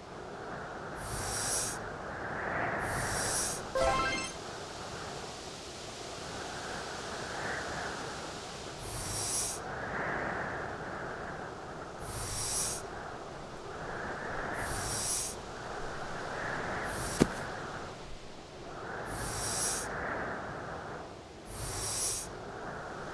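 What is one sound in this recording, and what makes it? Short sliding sound effects play again and again as a game character pushes snowballs across ice.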